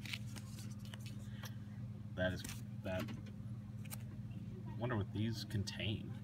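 Plastic wrapping crinkles as a hand handles a pack.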